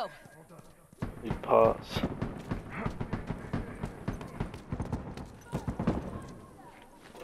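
Footsteps run across pavement and grass.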